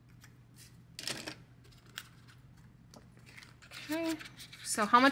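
A plastic binder clicks open.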